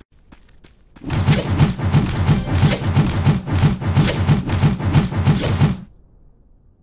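Game weapons strike in rapid, heavy blows during a fight.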